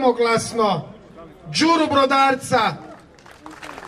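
A crowd of men chants loudly outdoors.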